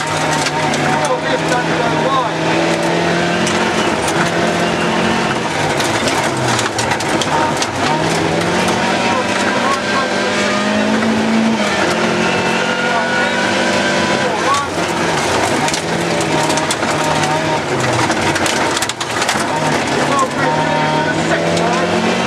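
Gravel and stones rattle against the underside of a car.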